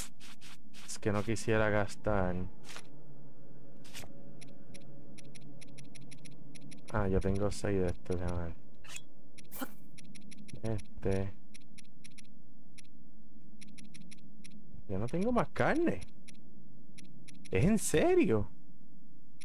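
A man speaks through a microphone with animation, in short bursts.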